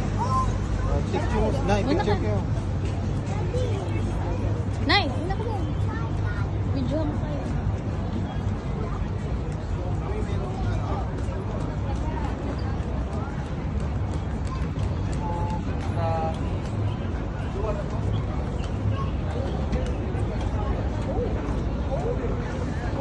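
Footsteps patter on a wooden boardwalk.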